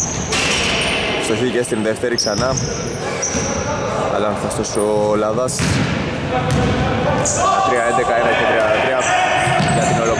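A basketball bounces on a wooden floor in a large echoing hall.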